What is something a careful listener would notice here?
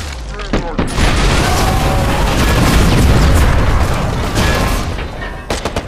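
A large explosion booms and rumbles deeply.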